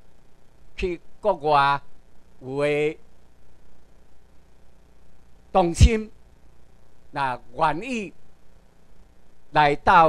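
A man lectures in short phrases through a microphone and loudspeakers in a large room.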